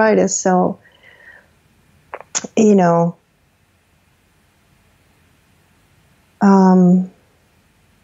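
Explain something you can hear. A man speaks in short phrases close to a microphone.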